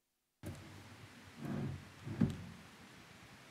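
Thumps and bumps come through a microphone as a man handles it.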